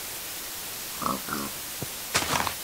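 A pig grunts close by.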